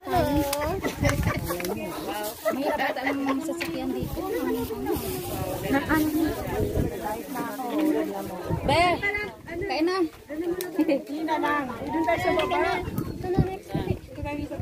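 A young woman talks close to a microphone with animation.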